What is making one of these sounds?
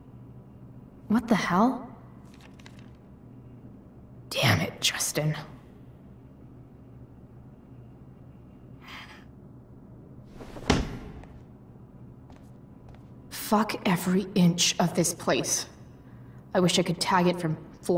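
A young woman mutters to herself in annoyance.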